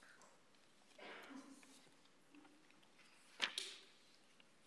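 Paper rustles close by.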